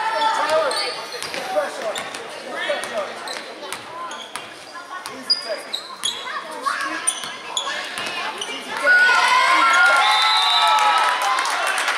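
A crowd of spectators talks and calls out nearby.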